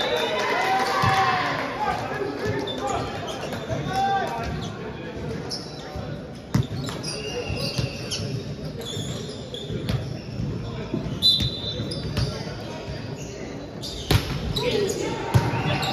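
Young men call out and shout to each other in a large echoing hall.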